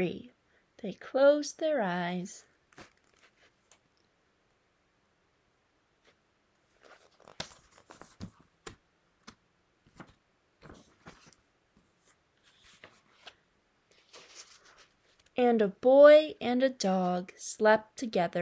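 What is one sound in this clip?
A young woman reads aloud calmly, close by.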